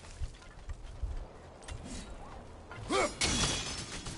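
Boots thud onto a stone ledge.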